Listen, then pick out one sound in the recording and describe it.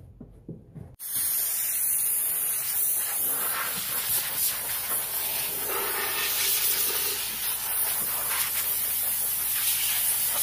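Compressed air hisses loudly from a hose.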